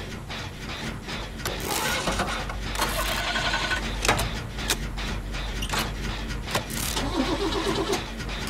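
A generator engine clanks and rattles while being repaired.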